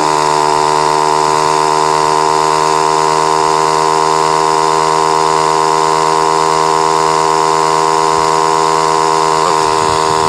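A motorcycle engine whines steadily at high revs, rising slowly in pitch.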